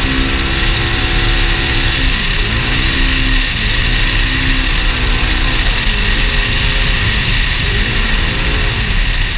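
Tyres crunch and rumble over a dirt track.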